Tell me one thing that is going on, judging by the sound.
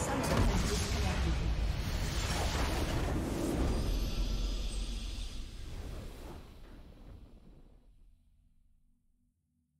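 A triumphant orchestral fanfare swells and then slowly fades away.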